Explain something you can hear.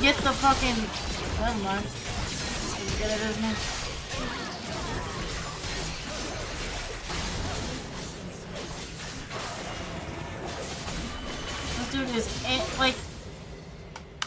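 Game spells and hits crackle and burst.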